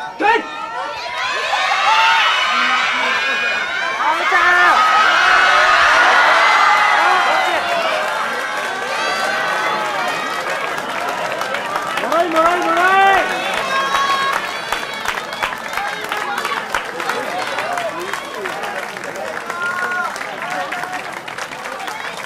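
A crowd cheers and shouts outdoors.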